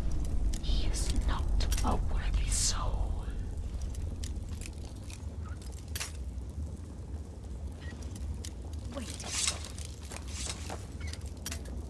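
A lockpick scrapes and clicks inside a metal lock.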